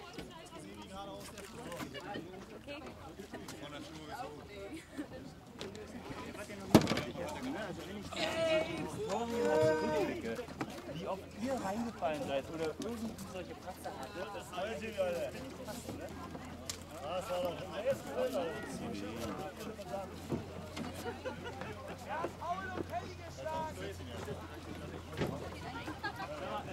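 Several men and women talk casually nearby, outdoors.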